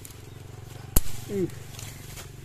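Scissors snip a fruit stem.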